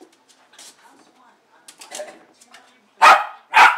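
A dog scratches at a door.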